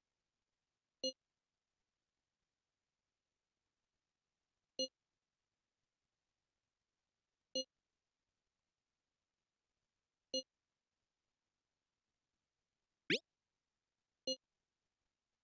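A short electronic chime sounds as each new message pops up.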